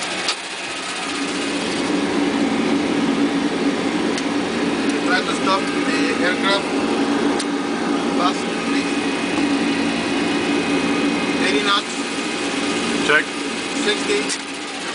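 A jet engine drones steadily through loudspeakers and grows louder.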